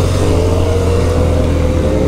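Another motorcycle rides by alongside.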